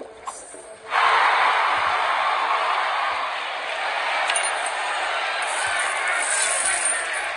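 Upbeat game music plays through a small speaker.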